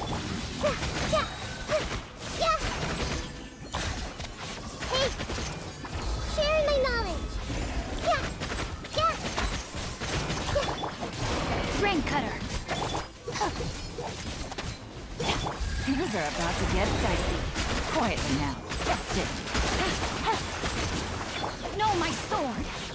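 Electric zaps crackle in a fast video game battle.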